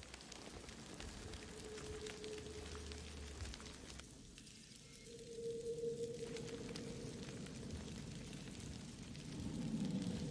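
Leaves and branches rustle as someone pushes through dense plants.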